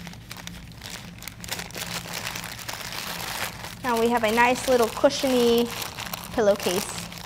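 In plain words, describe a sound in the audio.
A plastic wrapper crinkles and rustles as it is crumpled by hand.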